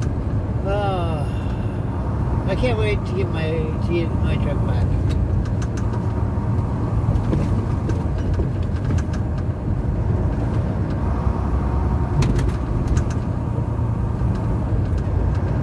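A vehicle's engine hums steadily from inside the cab as it drives along.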